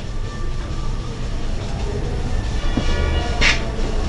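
A board eraser rubs across a whiteboard.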